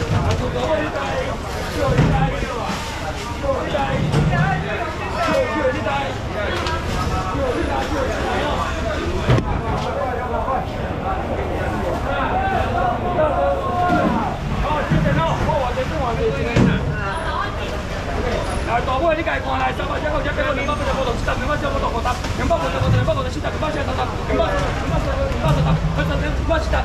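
A crowd of people chatter all around, busy and close.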